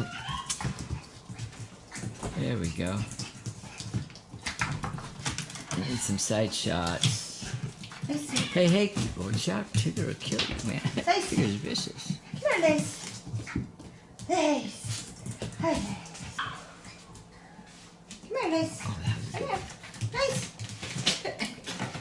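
A puppy whines and yips excitedly.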